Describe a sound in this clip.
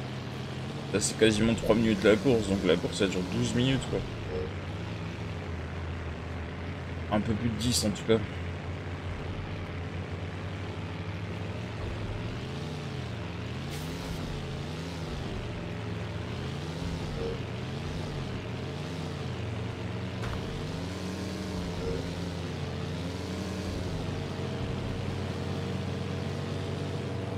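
A car engine hums steadily, its pitch rising and falling.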